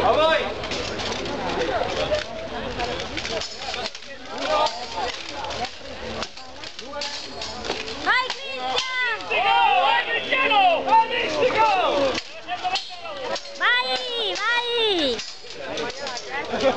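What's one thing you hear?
Steel swords clash and clang loudly, again and again.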